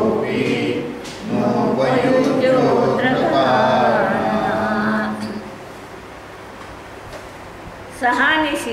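An elderly woman talks calmly into a clip-on microphone, close by.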